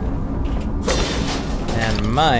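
A bright magical blast crackles and bursts.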